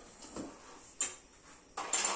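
A spoon clinks against a small metal bowl.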